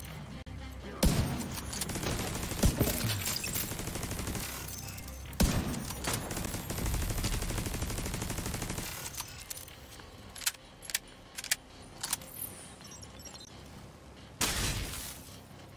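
Rifle shots crack loudly, one at a time, with a short echo.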